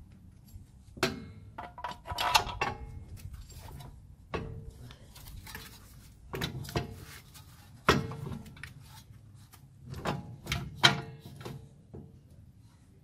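A wrench clinks against metal parts of a car's suspension.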